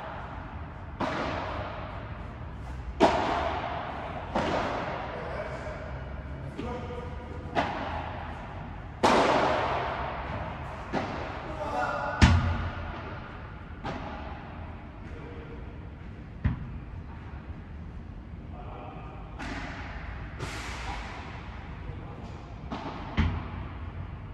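Paddle rackets strike a ball with sharp pops that echo in a large hall.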